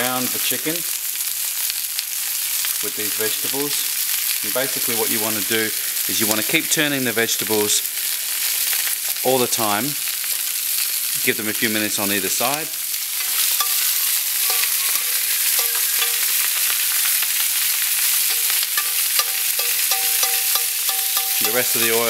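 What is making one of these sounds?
Food sizzles steadily on a hot grill.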